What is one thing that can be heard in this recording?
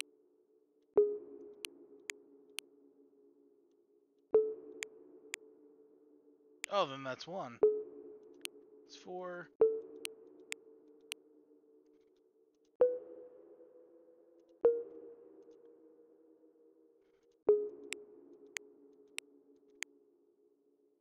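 A soft pitched chime rings briefly with each tap on a puzzle game.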